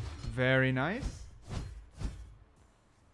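A staff whooshes through the air in quick swings.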